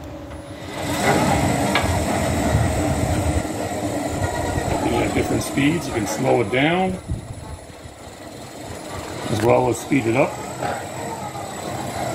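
A sawmill carriage rolls along its metal track.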